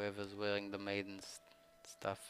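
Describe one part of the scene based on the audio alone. A man speaks in a drawn-out, sing-song voice close to a microphone.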